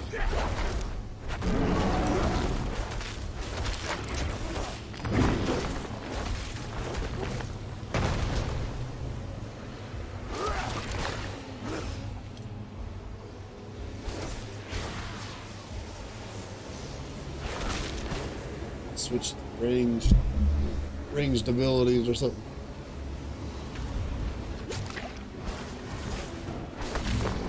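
Game combat sounds of spells and blows crash and clash throughout.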